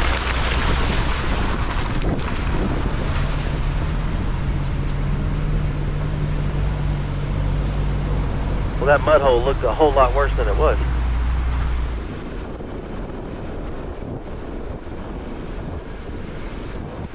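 Tyres crunch over rocky dirt and mud.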